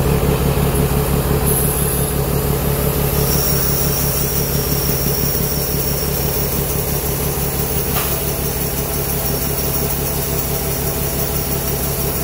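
Shelled corn pours from a combine's unloading auger into a grain cart.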